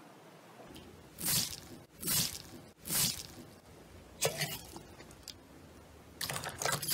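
A finger presses into crunchy bead slime, which crackles.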